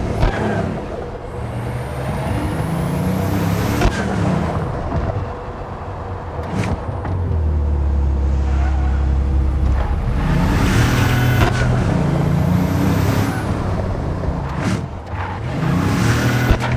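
Tyres hum and swish on the road.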